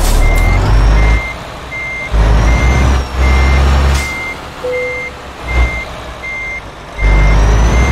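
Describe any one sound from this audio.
A truck's reversing alarm beeps steadily.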